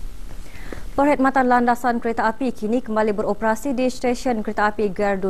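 A woman reads out the news calmly, close to a microphone.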